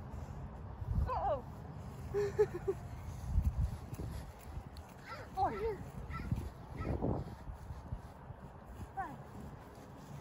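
A woman calls out with excitement outdoors.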